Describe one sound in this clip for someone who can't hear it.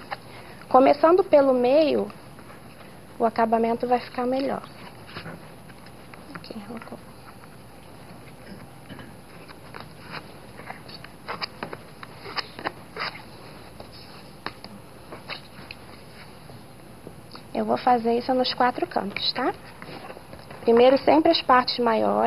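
Paper rustles and crinkles softly as hands fold and press it flat.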